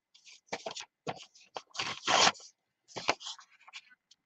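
A sheet of paper rustles as it is laid down.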